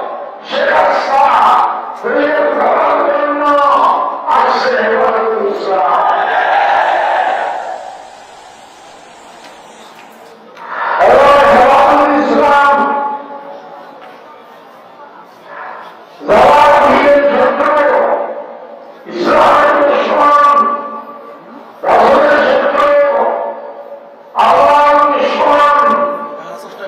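An elderly man speaks slowly and forcefully into a microphone over loudspeakers, in bursts with pauses.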